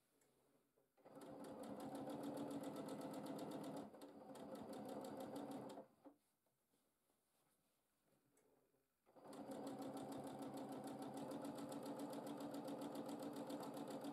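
A sewing machine whirs and stitches rapidly, stopping and starting.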